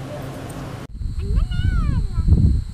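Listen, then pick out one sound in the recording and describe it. A young girl babbles and coos close by.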